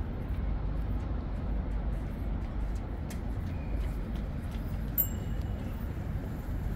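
Footsteps tap softly on a paved walkway.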